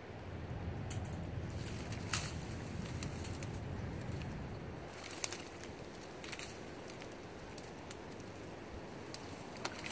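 Dry reeds rustle and crackle as a man pushes through them.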